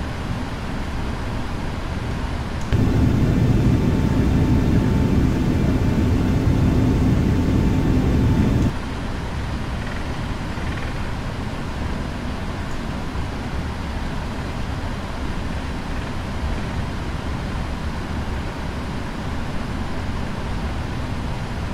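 Jet engines hum steadily as an airliner taxis.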